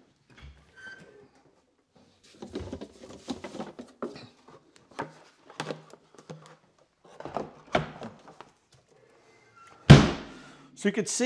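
Objects knock and clatter as a man handles equipment.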